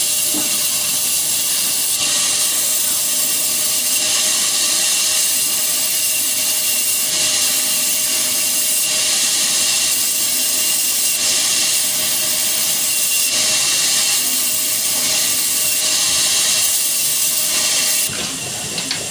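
A large saw blade whines steadily as it cuts through a log.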